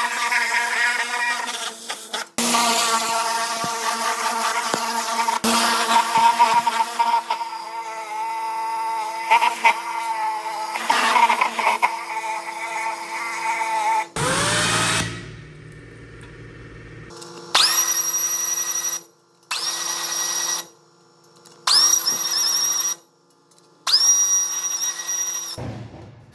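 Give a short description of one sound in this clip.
A pressure washer sprays water with a loud hissing roar.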